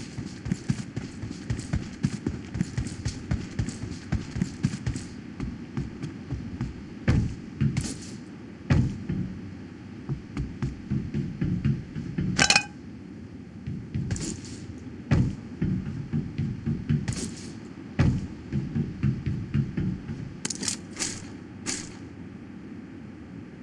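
Quick footsteps clang on hollow metal roofs.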